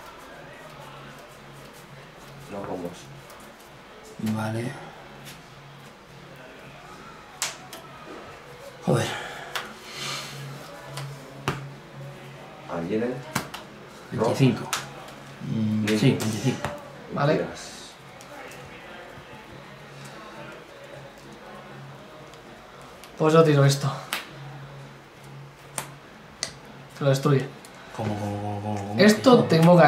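Playing cards shuffle and slap softly on a table.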